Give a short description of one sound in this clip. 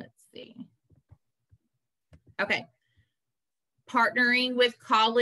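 A young woman speaks into a microphone, in short bursts.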